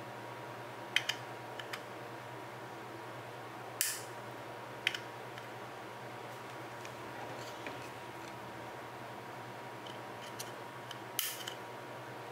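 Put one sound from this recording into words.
A small plastic switch clicks back and forth.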